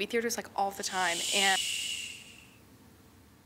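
A woman shushes softly.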